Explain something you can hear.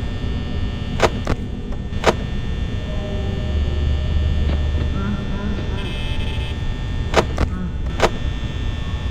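A door button clicks sharply.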